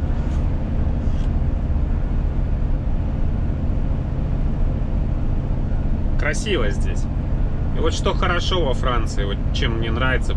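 Tyres roar steadily on the motorway.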